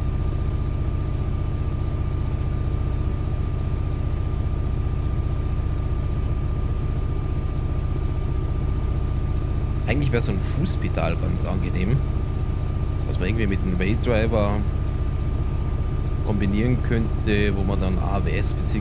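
A diesel locomotive engine rumbles steadily while the train runs along the track.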